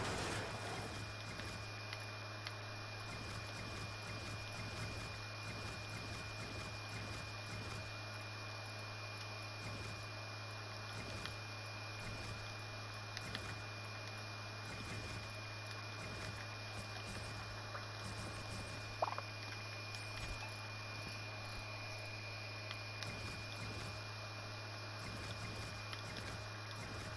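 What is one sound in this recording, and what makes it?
Game building pieces snap into place with soft clicks.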